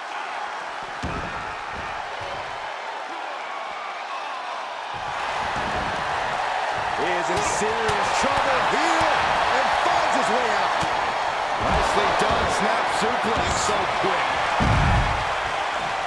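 Bodies thud heavily against a wrestling ring mat.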